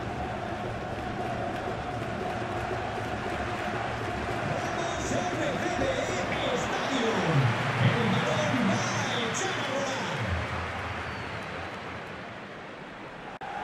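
A large stadium crowd roars and cheers steadily, rising and then fading.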